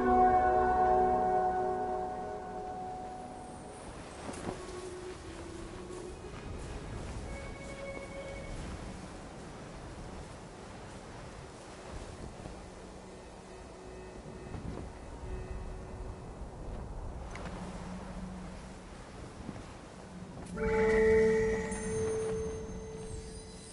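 Soft sand hisses and whooshes as something slides swiftly down a dune.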